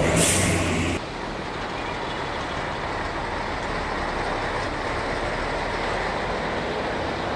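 A railcar engine idles at a distance.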